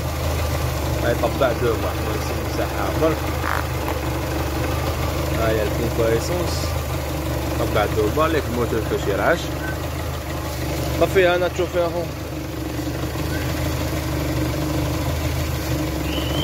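A car engine runs with a steady low hum.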